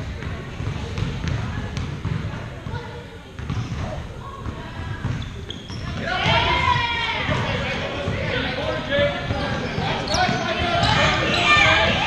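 Sneakers squeak on a wooden court in a large echoing gym.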